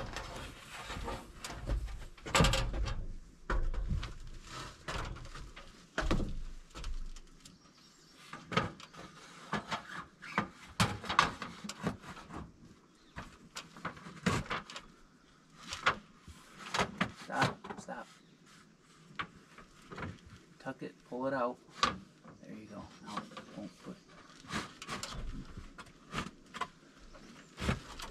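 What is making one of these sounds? Hands scrape and tap against a wooden board overhead.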